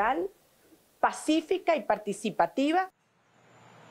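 A woman speaks with animation into several microphones, close up.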